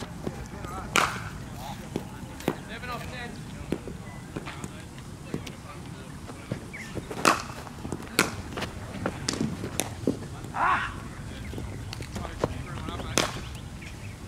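A cricket bat sharply cracks against a ball several times.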